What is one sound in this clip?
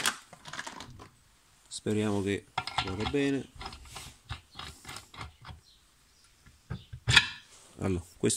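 Metal parts clink and scrape as they are handled.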